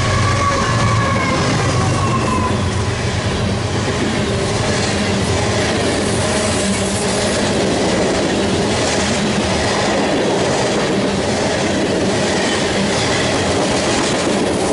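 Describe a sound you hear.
Freight cars clatter and rumble steadily over the rails.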